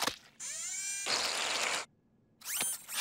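Whipped cream sprays with a hiss.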